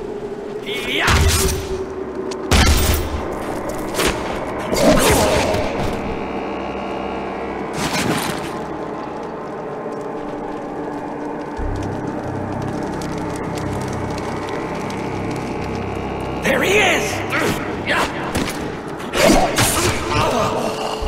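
A pistol fires loud shots in bursts.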